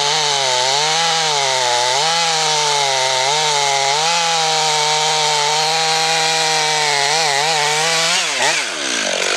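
A chainsaw engine roars loudly, its pitch wavering.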